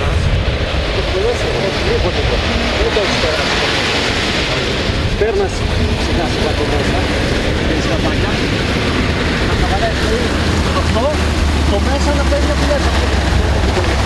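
A heavy truck engine rumbles as it draws near.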